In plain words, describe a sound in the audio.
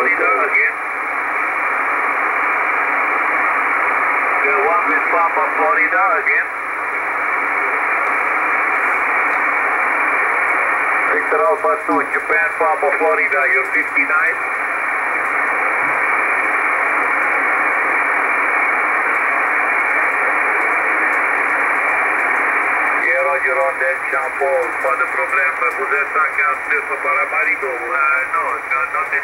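A radio receiver hisses with steady static through a small speaker.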